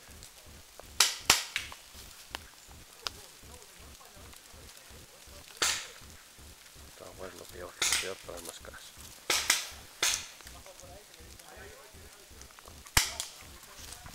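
Paintball guns fire in sharp, quick pops.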